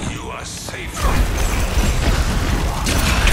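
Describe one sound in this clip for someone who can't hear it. Weapons fire in rapid bursts in a video game fight.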